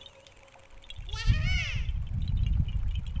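A small creature chirps and giggles in a squeaky voice.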